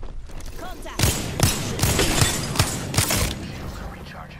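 Rapid gunshots crack out in quick bursts.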